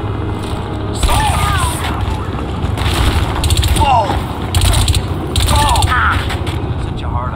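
Guns fire in loud bursts of shots.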